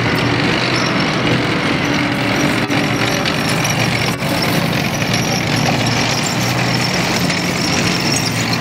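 Heavy tracked vehicles rumble and roar loudly as their engines drive them past.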